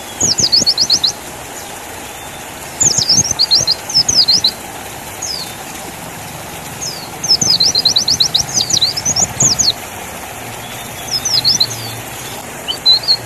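A small bird sings in quick bursts of high, sweet chirps and trills close by.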